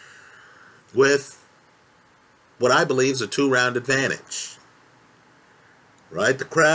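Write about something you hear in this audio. A man speaks calmly and close to a microphone, in short bursts with pauses.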